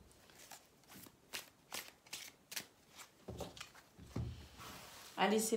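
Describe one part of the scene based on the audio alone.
Cards shuffle in a deck with soft flicking taps.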